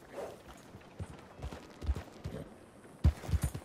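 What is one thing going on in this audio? A horse's hooves thud heavily on the ground.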